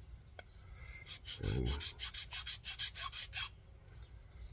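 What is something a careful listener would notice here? A file scrapes against a small piece of wood in short strokes.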